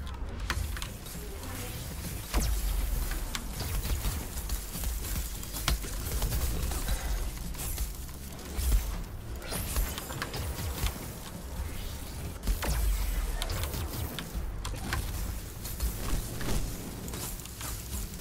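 Sharp game combat hits and impacts crack repeatedly.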